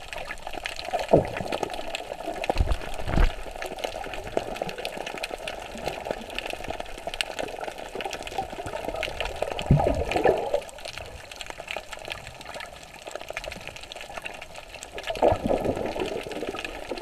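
Air bubbles gurgle in short bursts underwater.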